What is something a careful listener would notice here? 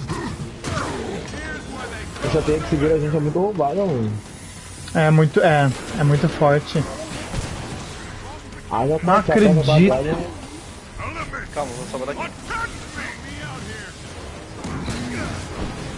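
Combat impacts and blasts thud and crash.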